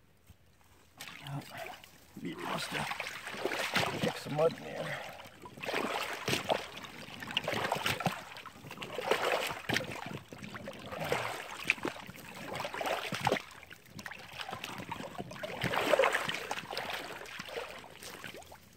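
Boots slosh and splash through shallow water.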